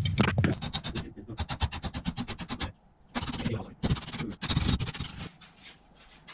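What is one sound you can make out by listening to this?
A ratchet wrench clicks rapidly in quick bursts.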